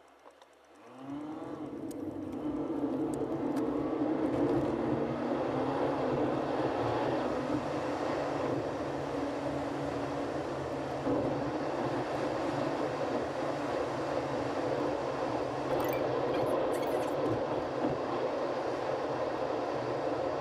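Tyres roll along the road with a steady rumble.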